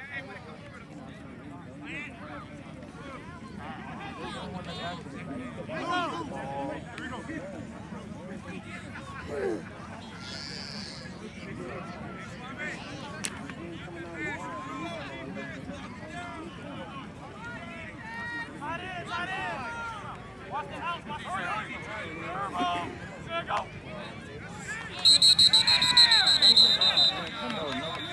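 A crowd of spectators talks and shouts outdoors.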